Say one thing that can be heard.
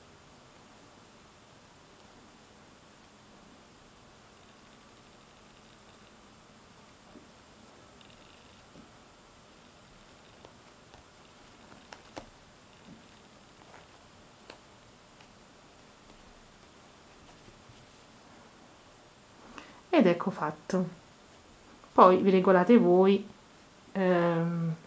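Fabric cord rustles softly as hands pull and thread it.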